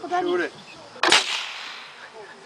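A homemade cannon fires with a loud bang that echoes outdoors.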